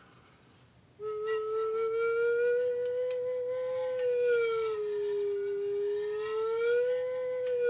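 A wooden flute plays a slow, steady melody.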